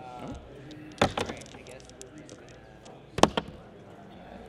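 Plastic game pieces click and tap on a tabletop.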